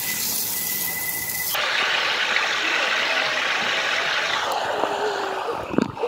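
Water sprays and splashes.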